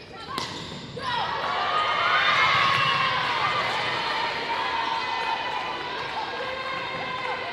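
Young women shout and cheer on the court.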